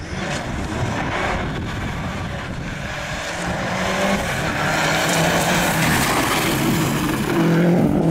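A second rally car engine approaches, revving hard as it draws closer.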